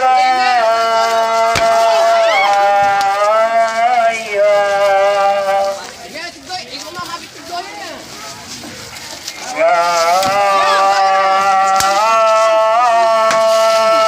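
Whips and sticks strike a man with sharp smacks.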